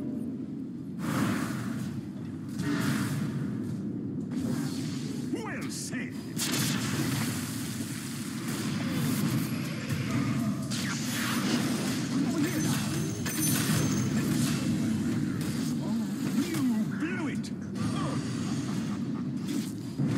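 Magic spells and clashing weapons burst and crackle in a fast fight.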